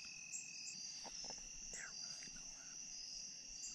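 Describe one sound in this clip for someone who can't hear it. A man whispers quietly close by.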